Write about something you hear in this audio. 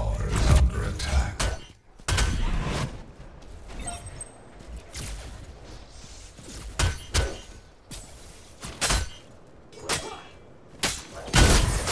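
A weapon fires bursts of blasts.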